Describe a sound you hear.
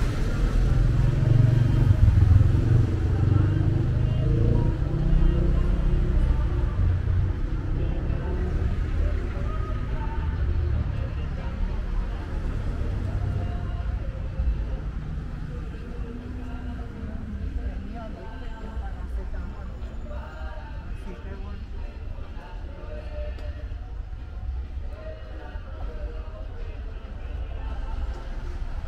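Traffic rumbles steadily nearby outdoors, louder at first and then easing.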